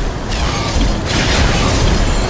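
A fiery blast whooshes.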